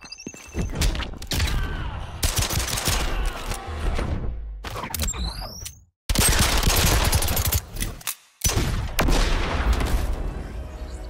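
Heavy blows and crashes land in a fight.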